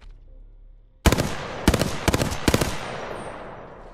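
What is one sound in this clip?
A rifle fires in loud, rapid bursts with echoing shots.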